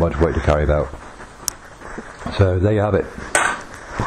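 Fabric rustles as it is handled and crumpled.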